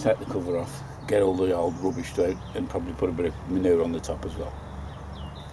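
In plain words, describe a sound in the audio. A middle-aged man speaks calmly, close by, outdoors.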